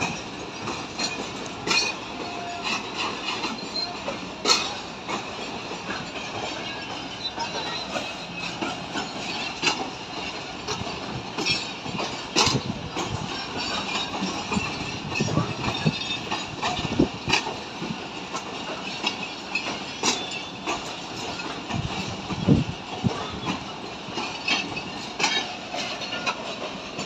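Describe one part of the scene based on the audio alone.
A passenger train rolls slowly along the track with wheels clattering and clanking.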